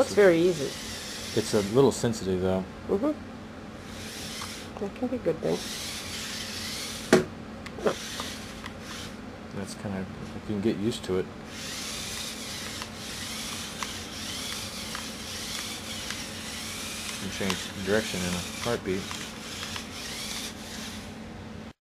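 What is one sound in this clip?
A small toy car's electric motor whirs and whines, rising and falling in pitch.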